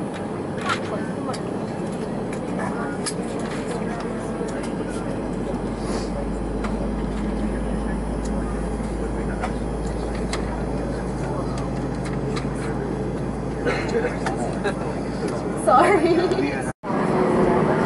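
Jet engines hum steadily as a plane taxis.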